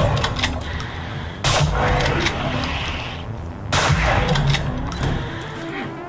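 A monster shrieks and growls.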